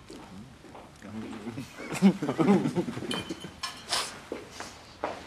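Two young men talk calmly across a table.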